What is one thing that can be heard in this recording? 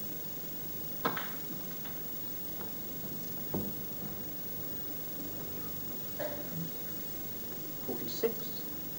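Snooker balls knock together with sharp clicks.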